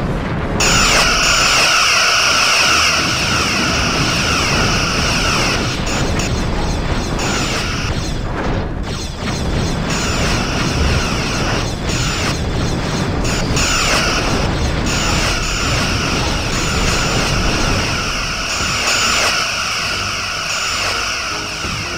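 Explosions boom and rumble over and over.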